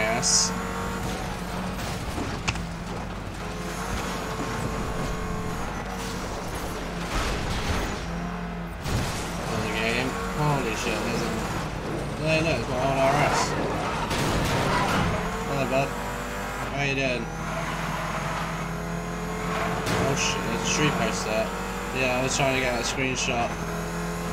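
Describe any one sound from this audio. A car engine roars steadily at high revs.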